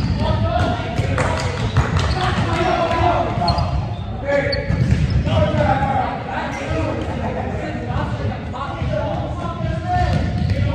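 Young men call out and talk in a large echoing hall.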